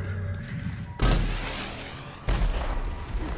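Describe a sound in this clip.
A heavy gun fires with loud booming blasts.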